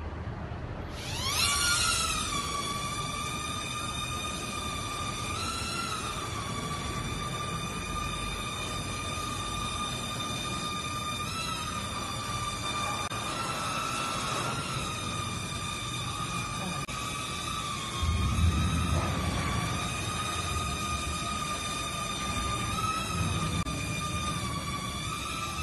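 A small toy drone's propellers whir with a high, steady buzz that rises and dips slightly as it hovers.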